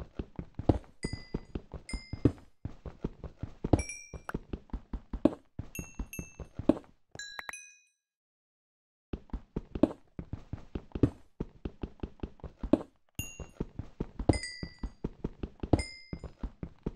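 Short high pops sound as loose pieces are picked up.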